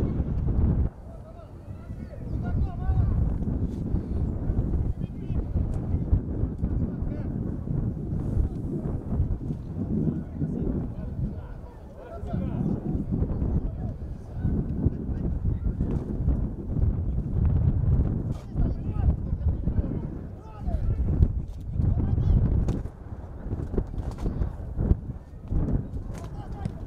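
Players shout across an open field.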